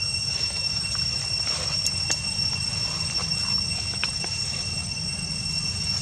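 Leaves rustle as a monkey pulls at the plants.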